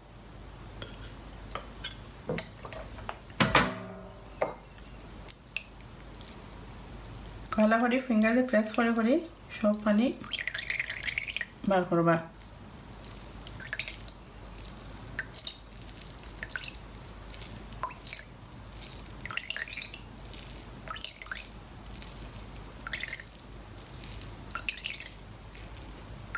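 A metal can clicks and scrapes against a small metal strainer.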